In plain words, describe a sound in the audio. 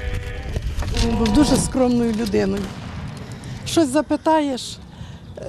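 A middle-aged woman speaks with emotion, close to a microphone.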